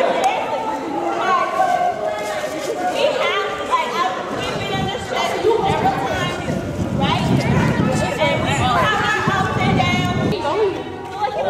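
A young woman shouts with excitement close by.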